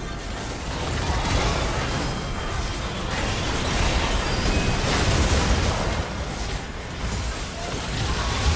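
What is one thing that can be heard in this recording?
Spell effects crackle and burst in a busy fight.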